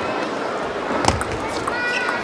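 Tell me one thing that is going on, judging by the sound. A table tennis ball is struck sharply by a paddle.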